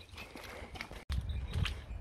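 Boots squelch through wet mud.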